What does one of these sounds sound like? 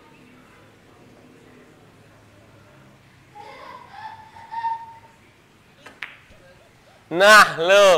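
Billiard balls click together on a table.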